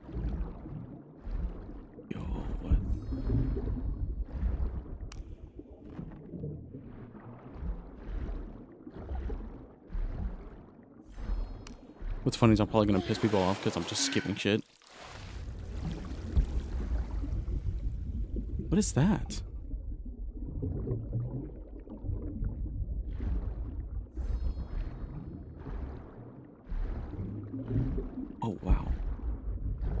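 Water churns and gurgles as a swimmer strokes underwater.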